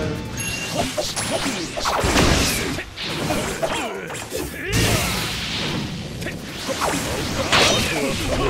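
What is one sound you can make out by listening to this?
An energy blast whooshes and crackles.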